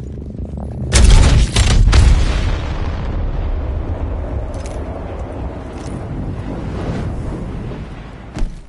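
A loud whoosh bursts out, then rushing wind roars steadily.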